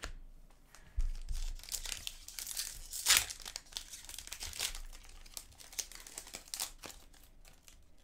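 A plastic wrapper crinkles and tears as a pack is opened.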